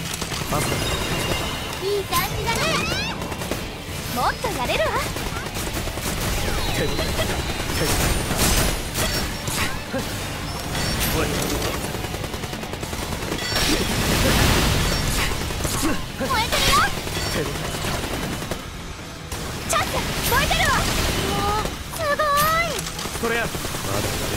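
Magic spells and laser blasts crackle and zap in quick bursts.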